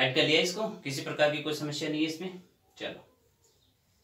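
A man speaks clearly and steadily, close by.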